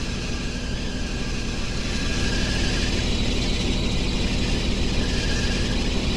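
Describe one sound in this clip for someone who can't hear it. A car engine revs hard and steadily.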